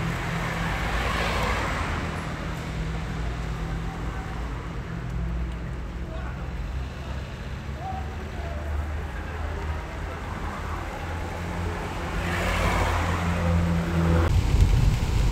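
Cars drive past on a wet road with a hiss of tyres.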